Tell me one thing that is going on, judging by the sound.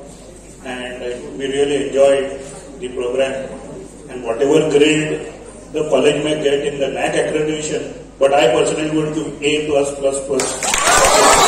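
Several men sing together through a microphone.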